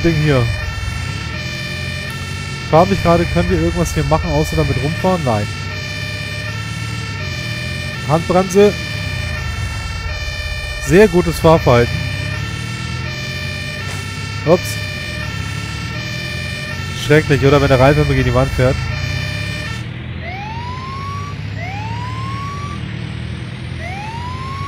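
A fire truck engine rumbles steadily as it drives.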